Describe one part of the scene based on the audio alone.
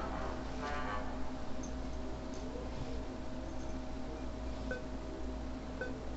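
Soft electronic game music plays steadily.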